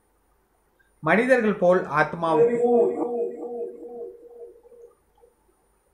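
A man cries out in a long, wailing exclamation.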